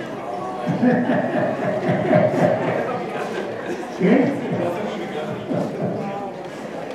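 An elderly man speaks loudly to an audience in an echoing room.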